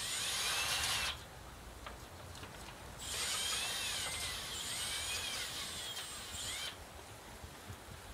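A plastic sheet flaps and rustles in the wind.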